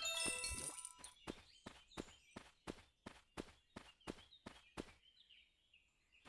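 Quick footsteps patter steadily on the ground.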